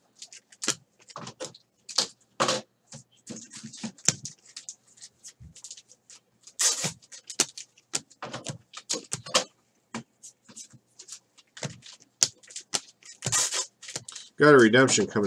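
Trading cards slide and flick as hands shuffle through them.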